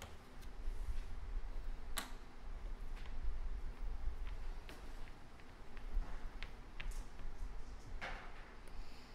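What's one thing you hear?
Game tokens click against each other on a table.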